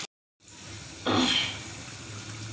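A metal lid clanks against a pot.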